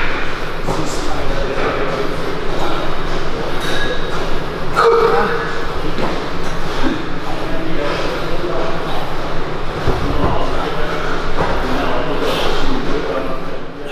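A weight stack clanks as a cable is pulled.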